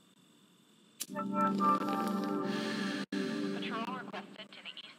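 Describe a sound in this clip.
A computer plays a startup tune.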